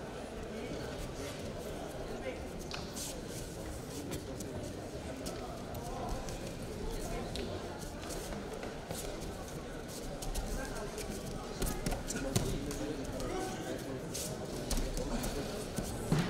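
Feet thud and shuffle on a padded mat.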